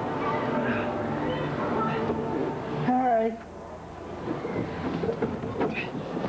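Clothing rubs and squeaks against a plastic tube slide during a ride down.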